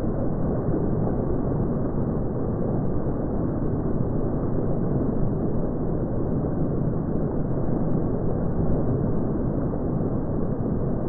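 Fountain jets splash steadily into a pool.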